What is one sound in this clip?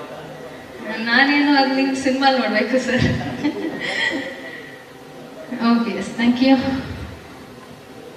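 A young woman speaks cheerfully into a microphone, heard through loudspeakers.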